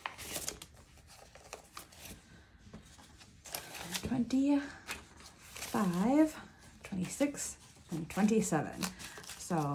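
Paper bills rustle and crinkle as hands handle them.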